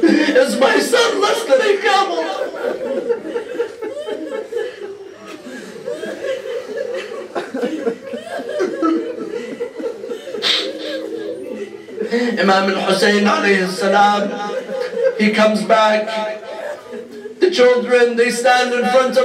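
A young man speaks emotionally into a microphone, with a slight echo.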